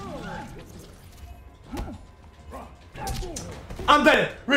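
Punches and kicks thud in a video game fight.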